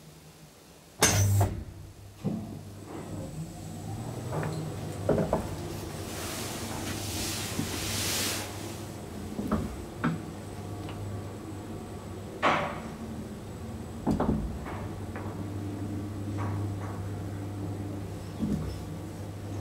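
An elevator car clunks and rattles now and then in the shaft.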